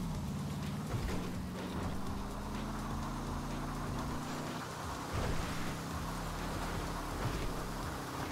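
A car's body thumps over bumps in the ground.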